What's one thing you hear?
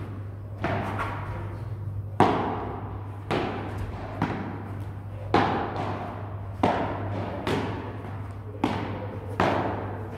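A ball bounces off the court and glass walls.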